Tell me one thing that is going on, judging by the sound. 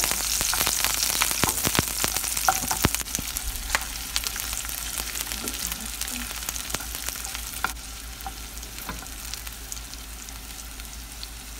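A spatula scrapes and taps against a frying pan.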